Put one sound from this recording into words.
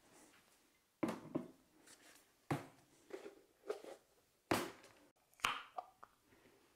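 Bottles and containers knock against a countertop.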